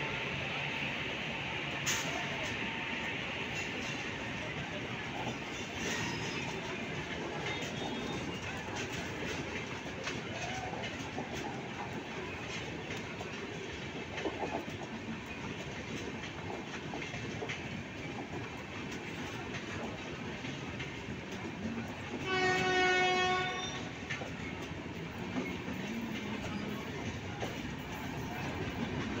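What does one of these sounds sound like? A passenger train rolls past steadily, its wheels clattering over the rail joints.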